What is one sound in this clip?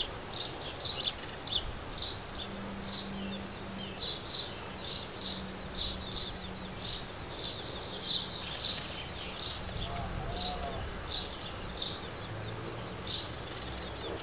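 Sparrows chirp repeatedly close by, outdoors.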